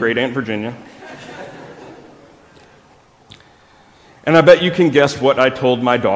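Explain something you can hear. A man speaks calmly into a microphone, heard in a large room.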